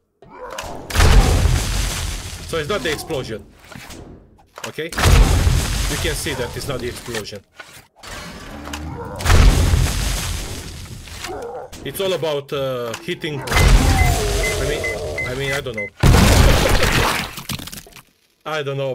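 Explosives blast with loud, deep booms.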